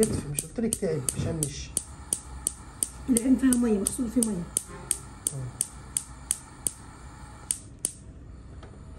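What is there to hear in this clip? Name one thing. A gas stove igniter clicks rapidly and steadily.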